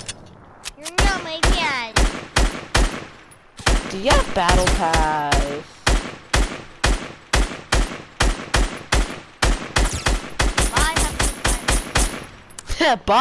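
A rifle fires rapid single shots.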